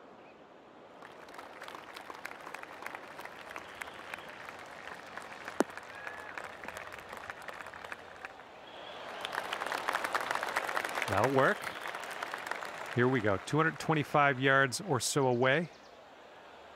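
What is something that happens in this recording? A distant crowd cheers and applauds.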